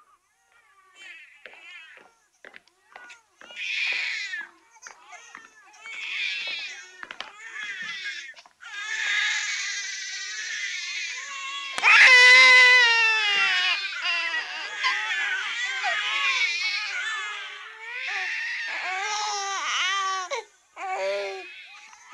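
A baby cries loudly in wailing bursts.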